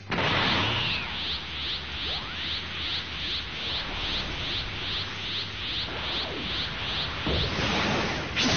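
A high energy charge hums in rapid, steady pulses.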